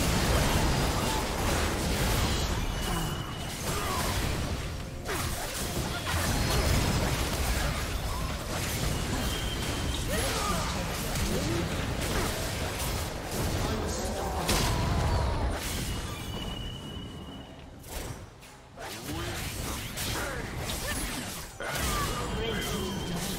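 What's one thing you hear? Spell effects and attacks crackle and burst in a fast game battle.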